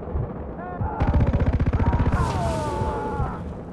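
A second explosion bursts and rumbles.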